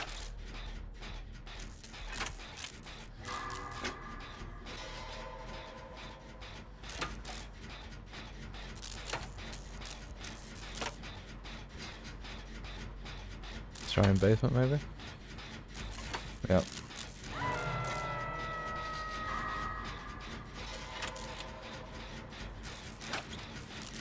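An engine rattles and clicks with quick metallic ticks.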